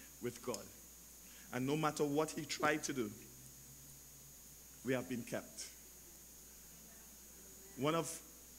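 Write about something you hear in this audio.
A man speaks slowly and clearly into a headset microphone, with pauses between phrases.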